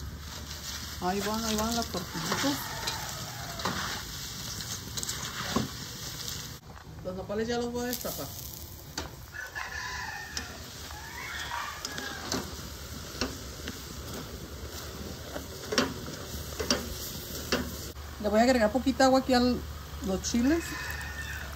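A woman talks calmly.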